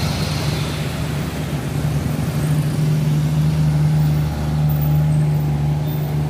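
Motorcycle engines drone as they ride past.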